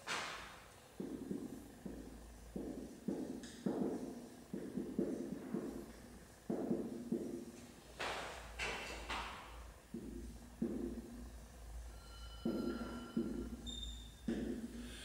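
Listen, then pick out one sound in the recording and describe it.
A marker squeaks and taps across a whiteboard.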